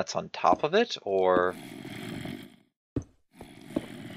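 A stone block is set down with a short soft thud.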